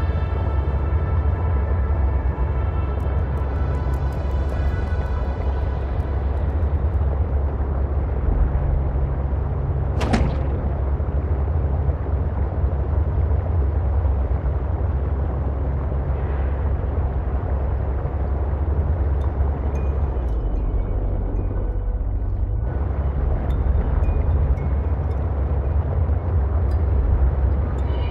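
A small submarine's engine hums low and steady underwater.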